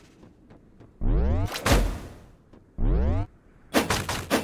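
Game magic spells whoosh and sweep upward.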